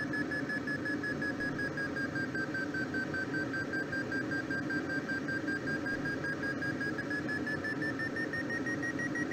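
A flight instrument beeps in quick, steady pulses, its pitch dipping and then slowly rising.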